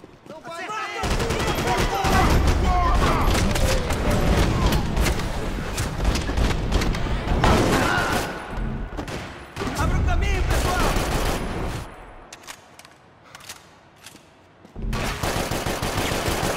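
Rapid gunshots crack and echo in a large hall.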